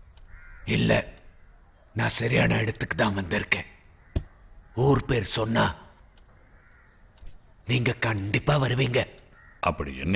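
An elderly man speaks with animation, close by.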